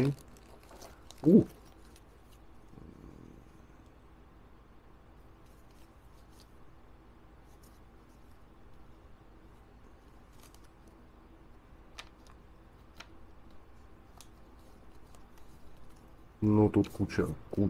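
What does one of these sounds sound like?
Paper packets rustle and crinkle as they are handled.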